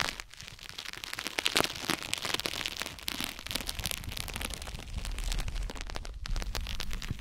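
Fingertips scratch and crinkle a rolled plastic mesh close to a microphone.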